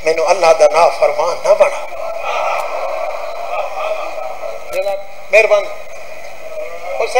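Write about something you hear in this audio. A man speaks forcefully into a microphone, heard through loudspeakers with echo.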